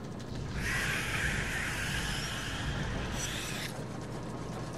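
An electric energy whip crackles and hisses loudly.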